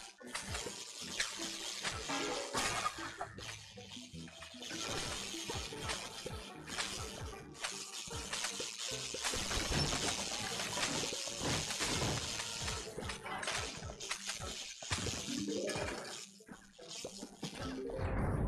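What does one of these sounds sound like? Game plants fire a rapid stream of popping, icy shots.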